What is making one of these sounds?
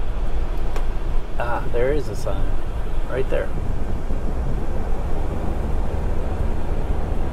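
A vehicle rumbles along a road, heard from inside.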